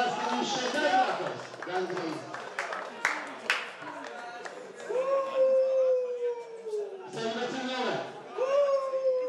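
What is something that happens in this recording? Young men on the sidelines shout and cheer outdoors.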